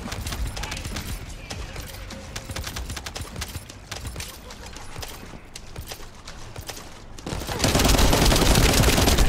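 Rapid gunshots and impacts crack in quick bursts.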